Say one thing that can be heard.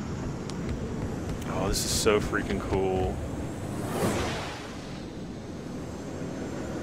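A starfighter's engine roars steadily as it flies low.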